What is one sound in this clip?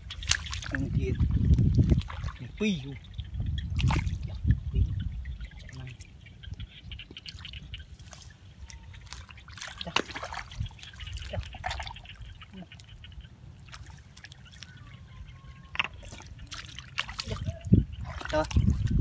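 Hands squelch and scrape in wet mud.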